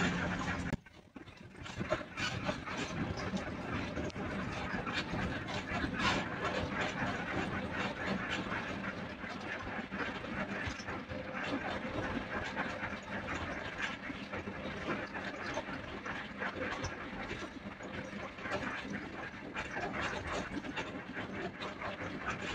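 Tyres roar on a paved highway, heard from inside the cabin of a moving vehicle.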